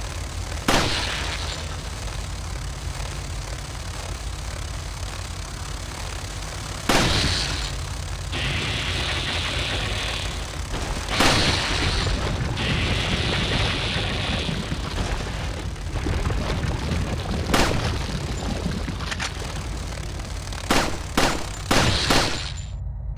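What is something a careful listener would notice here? Pistol shots ring out one at a time, with a short echo.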